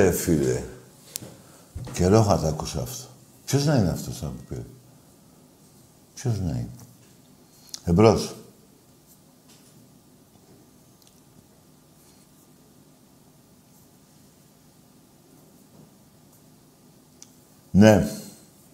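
An elderly man speaks with animation into a close microphone, in short bursts with pauses.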